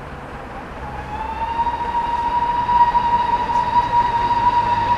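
A steam locomotive's whistle blows loudly and steadily.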